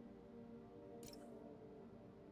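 A short soft electronic chime sounds.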